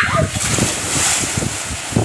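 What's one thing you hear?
Water splashes as someone plunges into a pool.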